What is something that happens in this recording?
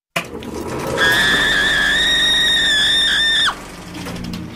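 A woman screams shrilly.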